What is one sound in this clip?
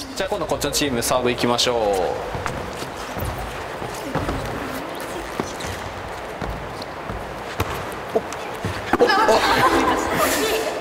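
Young women call out to each other during play.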